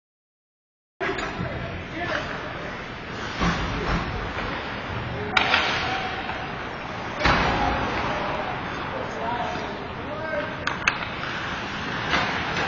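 Hockey skates scrape on ice in a large echoing rink.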